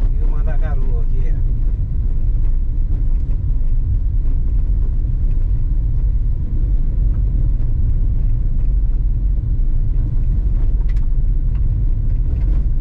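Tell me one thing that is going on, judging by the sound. A car engine rumbles steadily inside a moving car.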